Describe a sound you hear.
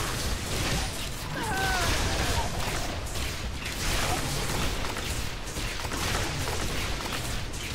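Magic spells crackle and burst in rapid succession.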